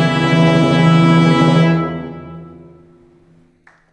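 An orchestra and piano hold a final chord that fades away.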